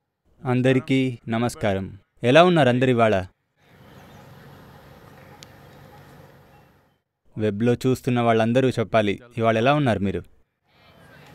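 An elderly man speaks slowly and calmly into a microphone, in drawn-out phrases.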